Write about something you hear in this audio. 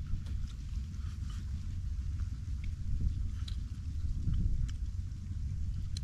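Chopsticks tap lightly against bowls.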